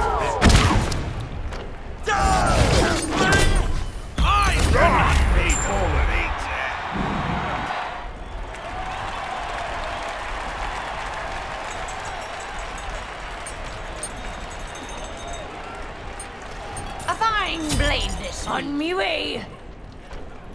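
Magic blasts and fiery explosions burst in quick succession.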